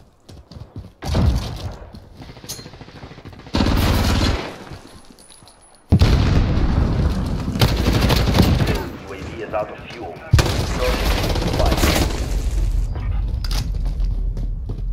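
Automatic gunfire rattles in loud bursts.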